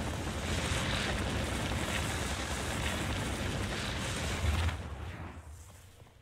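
Magical blasts crackle and roar.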